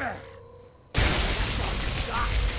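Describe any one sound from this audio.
Electricity crackles and hisses loudly.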